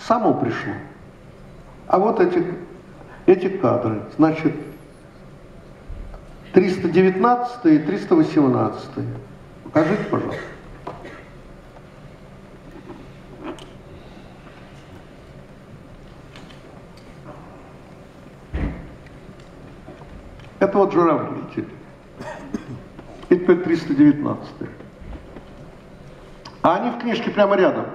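An older man speaks through a microphone in bursts, with pauses, in an echoing hall.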